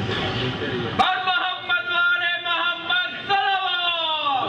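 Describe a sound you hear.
A man chants loudly in a wavering voice through a microphone and loudspeakers.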